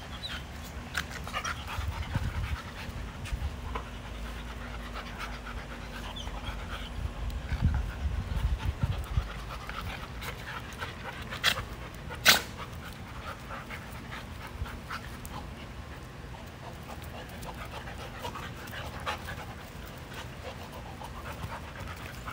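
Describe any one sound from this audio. Two dogs growl playfully as they wrestle.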